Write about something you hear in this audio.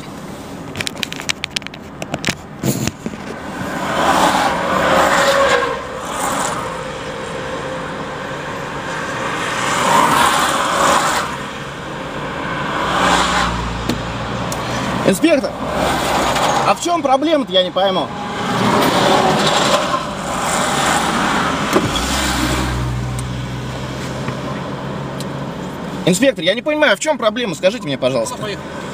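A car engine and tyres rumble steadily on the road.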